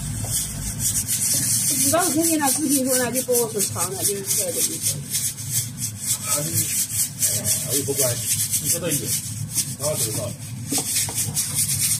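Food sizzles and crackles in a hot pan.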